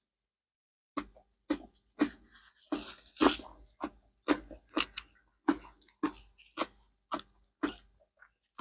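A man chews crunchy food close to a microphone.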